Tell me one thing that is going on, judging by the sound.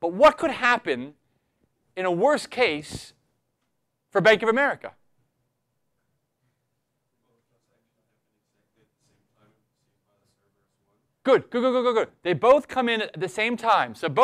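A man lectures through a microphone, speaking in short bursts with pauses.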